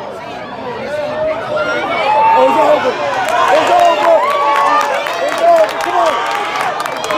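A crowd of spectators cheers and shouts loudly outdoors nearby.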